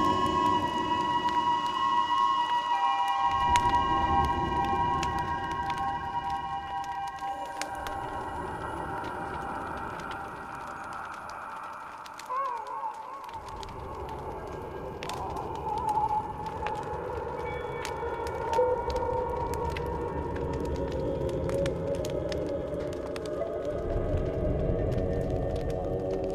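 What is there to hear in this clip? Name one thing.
Electronic music plays loudly through loudspeakers.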